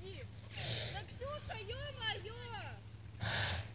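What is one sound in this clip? A flock of geese honks overhead.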